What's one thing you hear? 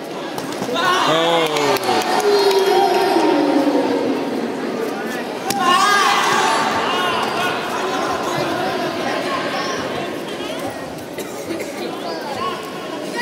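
A crowd cheers and shouts loudly in a large echoing hall.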